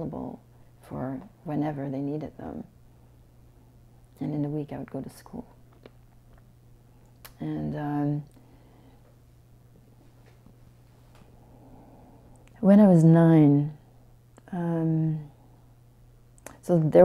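A middle-aged woman speaks calmly and close by, in short bursts with pauses.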